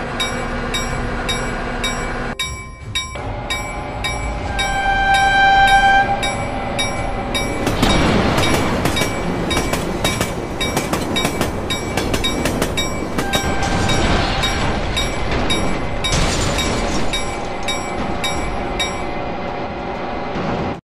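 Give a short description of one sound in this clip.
A diesel locomotive engine rumbles.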